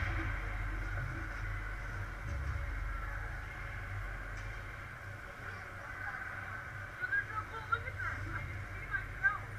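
Ice skates scrape and glide across the ice in a large echoing rink.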